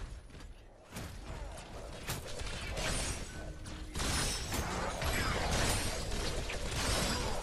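Weapons fire and energy blasts crackle during a close fight.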